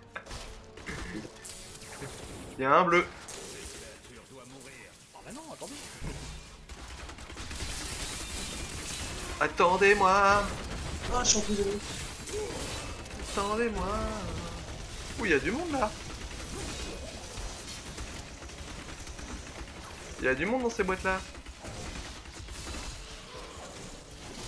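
Magic bolts crackle and zap in rapid bursts.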